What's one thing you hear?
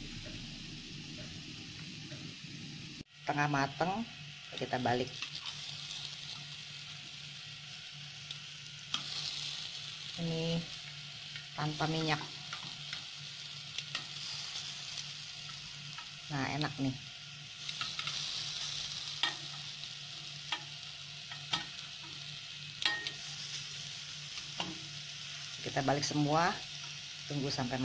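Metal tongs scrape and tap against a pan.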